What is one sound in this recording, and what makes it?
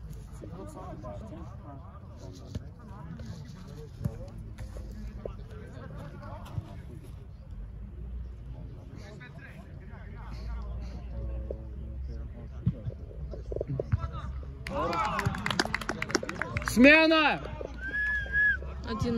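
Young men shout and call out across an outdoor football pitch.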